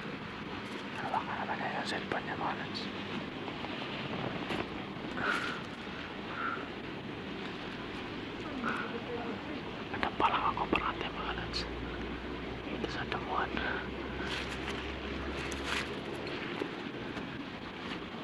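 Tall grass rustles and swishes as a person pushes through it.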